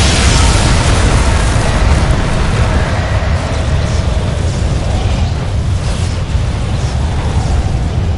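Lightning crackles sharply.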